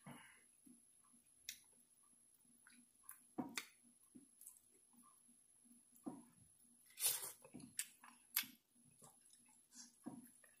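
A man chews food wetly close to a microphone.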